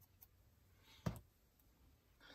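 A rubber stamp thuds onto paper.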